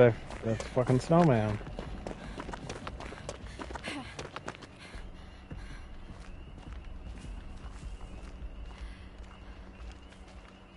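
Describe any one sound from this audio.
Footsteps run quickly through grass and dirt.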